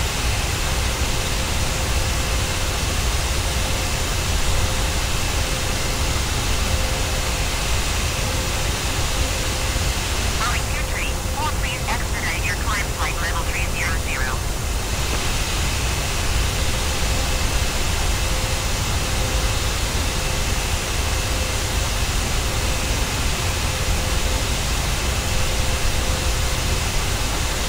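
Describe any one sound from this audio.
The turbofan engines of a jet airliner drone steadily in flight.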